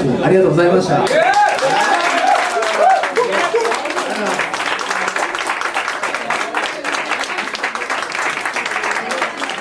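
A man claps his hands repeatedly.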